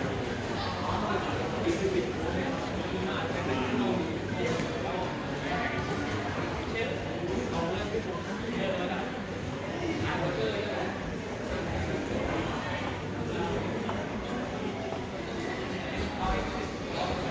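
Voices murmur and echo through a large indoor hall.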